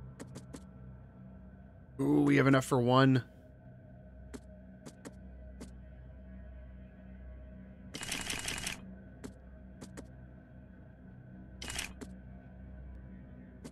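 Menu clicks tick one after another.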